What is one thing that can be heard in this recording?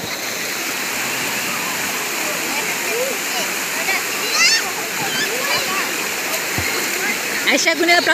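Water splashes as a girl kicks and paddles in a swim ring.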